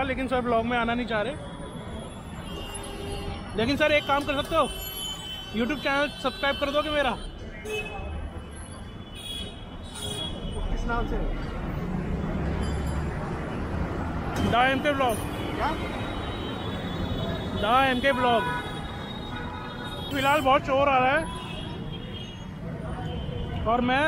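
Street traffic hums in the background.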